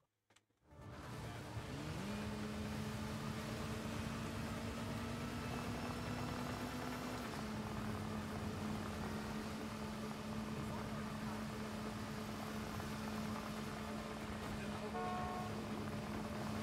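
A motorcycle engine hums steadily at speed.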